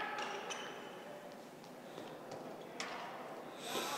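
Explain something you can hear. A hockey stick strikes a ball sharply.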